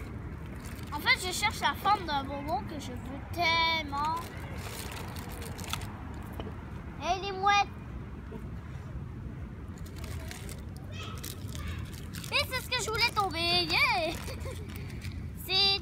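Two young girls talk with animation close by, outdoors.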